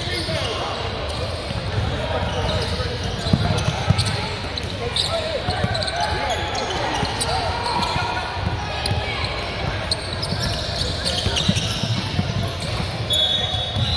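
A basketball bounces repeatedly on a hard court in a large echoing gym.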